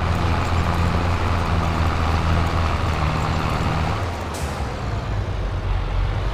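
Tractor tyres roll over rough ground.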